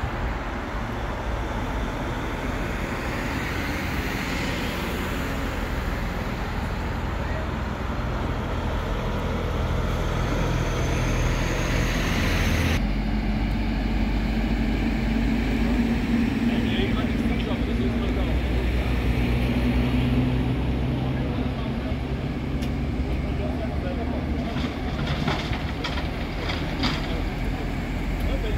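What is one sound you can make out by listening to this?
A diesel fire engine idles.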